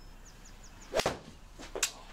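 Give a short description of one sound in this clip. A golf club strikes a ball with a sharp crack indoors.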